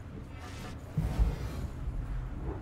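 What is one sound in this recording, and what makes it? A hammer strikes hard with a deep thud.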